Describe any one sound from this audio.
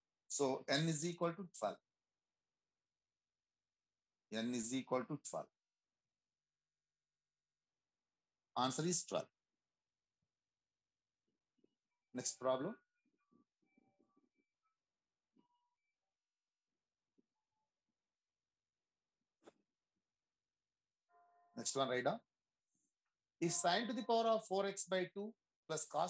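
A man explains calmly over an online call, in short bursts with pauses.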